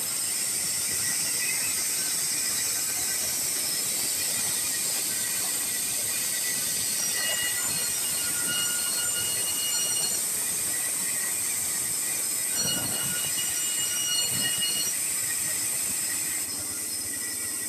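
A band saw whines steadily as it runs.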